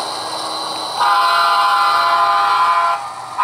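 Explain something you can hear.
A model locomotive horn blares.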